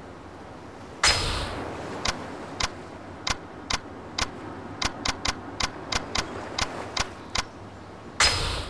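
Short electronic menu clicks sound repeatedly in quick succession.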